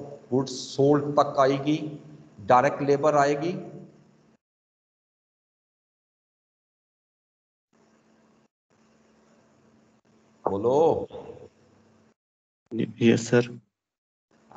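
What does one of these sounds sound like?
A man speaks with animation into a microphone on an online call, pausing between phrases.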